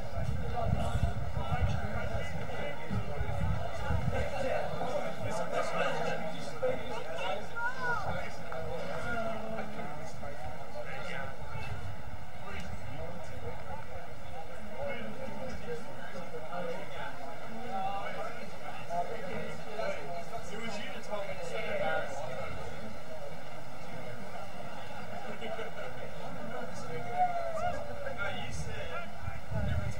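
Distant players and spectators call out on an open field.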